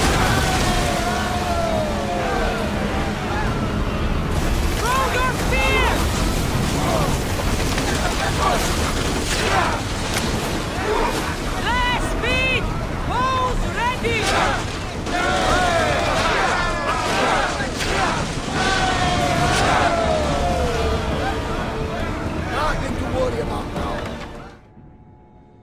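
Waves crash and rush loudly against a ship's hull.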